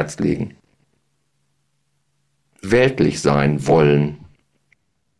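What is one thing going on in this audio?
A middle-aged man speaks calmly into a close microphone.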